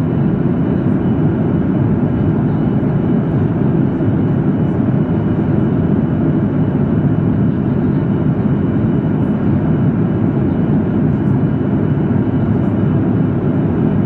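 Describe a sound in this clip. A jet airliner's engines roar steadily from inside the cabin.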